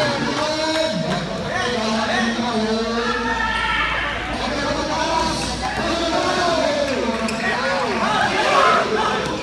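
A crowd of young spectators chatters and shouts loudly in an echoing indoor hall.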